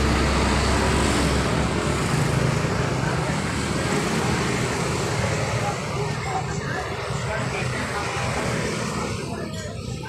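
Car engines hum and traffic passes nearby outdoors.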